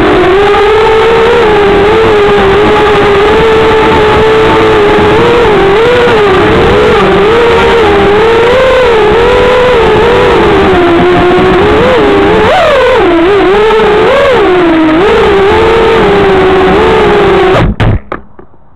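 Small electric motors whine loudly, rising and falling in pitch.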